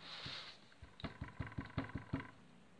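Hands pat and press soft modelling clay on a table.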